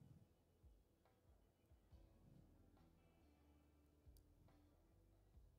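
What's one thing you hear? A game menu gives short clicks as buttons are pressed.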